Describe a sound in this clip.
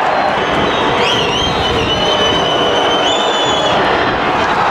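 Whistles shrill from the crowd.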